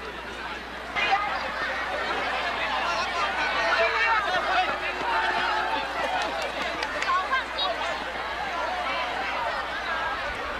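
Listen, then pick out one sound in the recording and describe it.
Many people cheer and shout excitedly close by.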